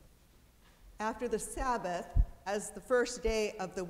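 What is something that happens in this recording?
An elderly woman reads aloud through a microphone in a large echoing room.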